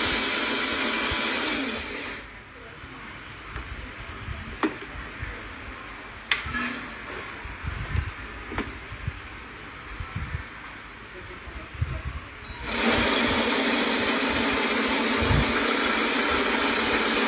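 A small electric motor whirs with a high, steady whine.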